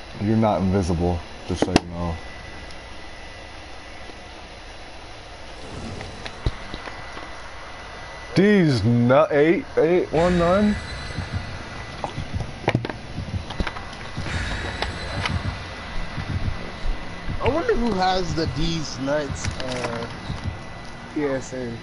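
A campfire crackles and burns.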